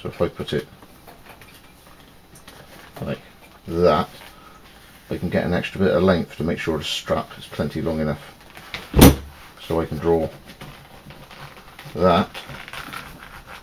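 Hands shift and fold a piece of stiff leather on a table.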